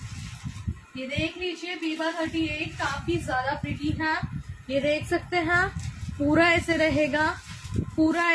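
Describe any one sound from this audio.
A young woman speaks with animation, close up.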